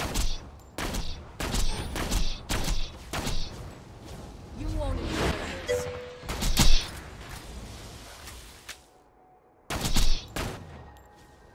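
Gunshots crack repeatedly in quick bursts.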